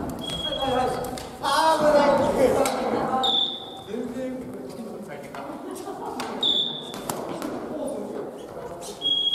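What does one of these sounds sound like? Sneakers squeak on a hall floor.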